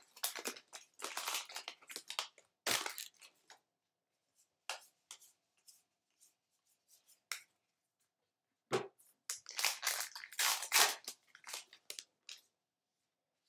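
A foil wrapper crinkles and rips open close by.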